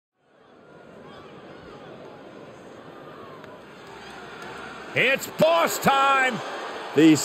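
A large crowd cheers and murmurs in a big echoing arena.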